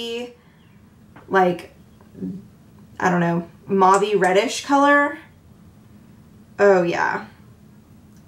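A young woman speaks close by in short, expressive phrases.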